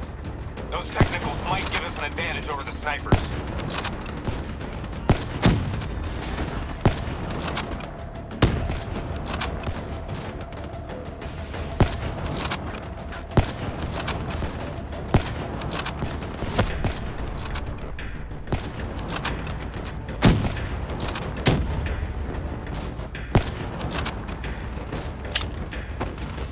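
A rifle fires loud single shots at a steady pace.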